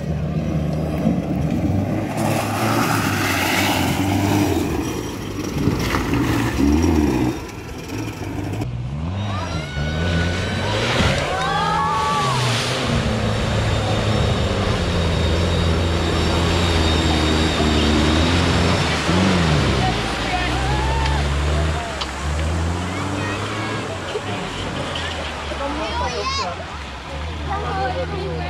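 An off-road engine revs hard, rising and falling.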